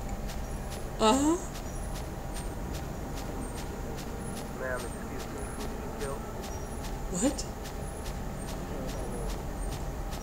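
A young woman speaks in short bursts, close to a microphone.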